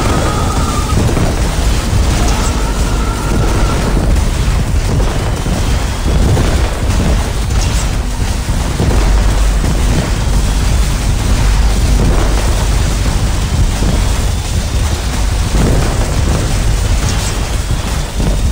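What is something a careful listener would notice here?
Heavy machine weapons fire in rapid bursts.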